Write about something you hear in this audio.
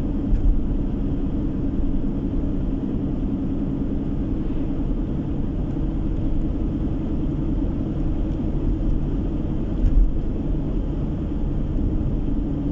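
A vehicle's engine hums steadily from inside the cab.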